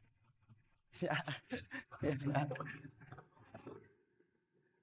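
A middle-aged man speaks.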